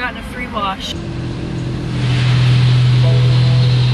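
Car wash machinery hums loudly.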